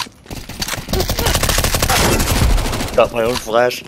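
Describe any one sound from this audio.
A pistol fires a quick run of shots.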